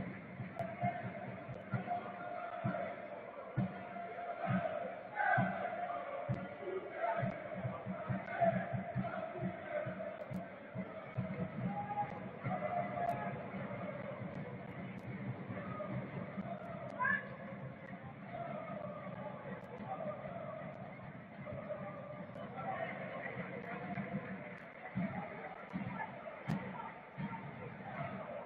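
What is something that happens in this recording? A large stadium crowd chants and sings steadily, echoing around the stands.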